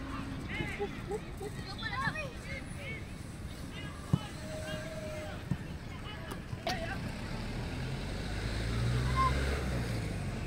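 Children shout and cheer across an open field.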